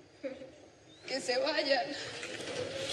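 A young boy speaks briefly nearby.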